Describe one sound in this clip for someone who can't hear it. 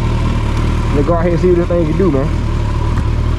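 A motorcycle engine revs up briefly and drops back.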